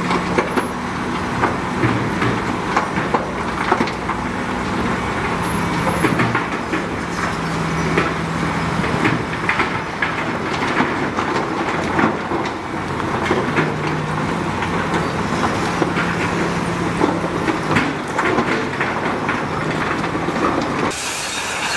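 A dump truck's diesel engine rumbles steadily nearby.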